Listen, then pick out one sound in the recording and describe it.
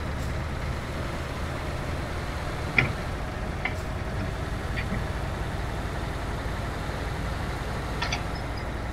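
A truck engine rumbles steadily as the truck drives along a road.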